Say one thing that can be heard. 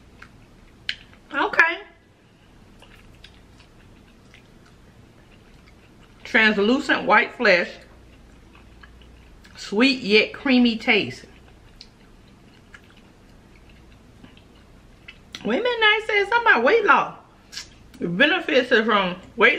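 A young woman chews fruit softly, with small wet mouth sounds.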